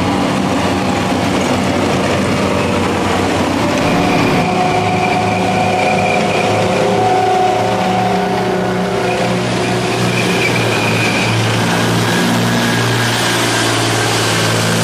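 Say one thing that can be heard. Heavy tracked armoured vehicles rumble past close by with droning engines.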